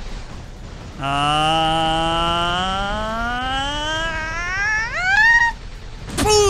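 A young man draws out a long, loud vocal sound that rises in pitch at the end.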